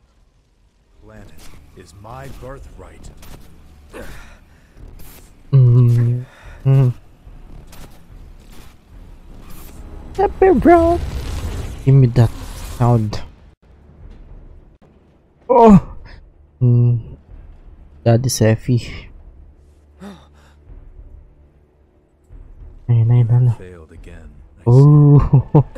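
A man speaks close into a microphone with animation.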